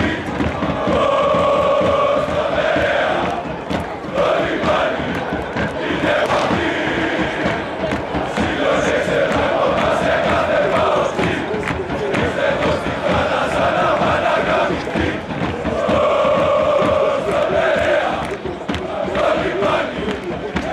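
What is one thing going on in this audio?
A large crowd of fans chants and sings loudly in unison, echoing through an open stadium.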